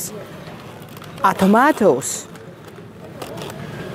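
Plastic packaging crinkles under a hand.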